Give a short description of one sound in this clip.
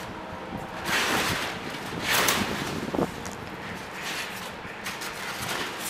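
Light thumps sound as foam pieces are pressed together.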